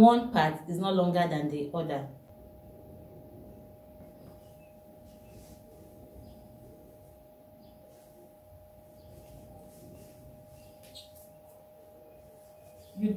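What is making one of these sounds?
Fabric rustles softly.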